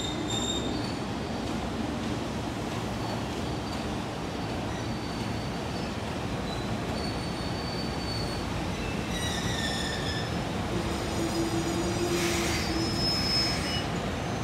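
An electric locomotive hums steadily as it rolls slowly along the tracks.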